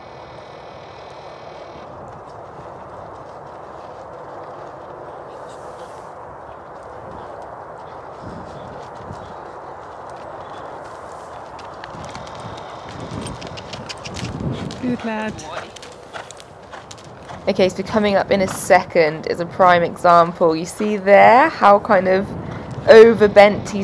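A horse's hooves thud and crunch on gravel at a steady trot.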